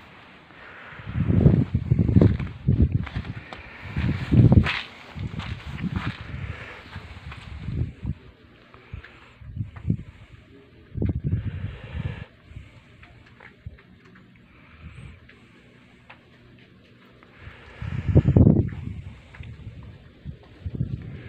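Dogs scamper and crunch through snow.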